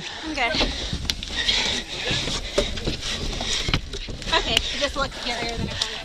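Sneakers scuff and thud against a wooden wall.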